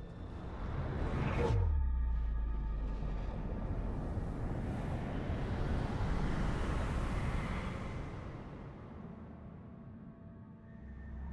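A deep explosion roars and rumbles, then slowly fades.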